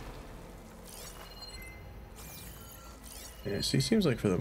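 A shimmering energy column hums and crackles.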